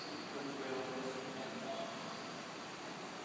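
A man speaks calmly at a distance in a large echoing hall.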